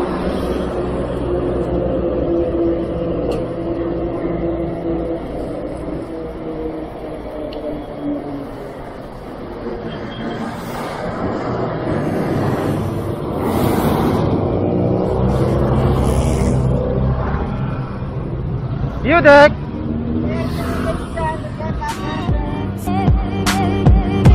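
An engine hums steadily from a vehicle driving along a road.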